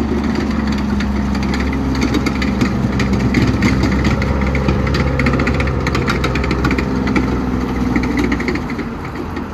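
Metal tracks clatter and squeak as a vehicle rolls over dirt.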